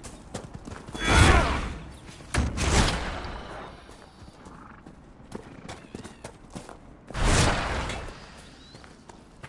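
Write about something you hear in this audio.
Fiery magic blasts roar and whoosh in loud bursts.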